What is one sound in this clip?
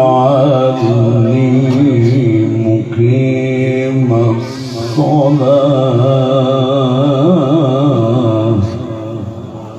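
An elderly man chants in a long, wavering melody through a microphone in an echoing hall.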